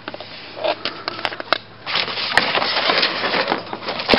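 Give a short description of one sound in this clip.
A foam mat scrapes and rustles against cardboard.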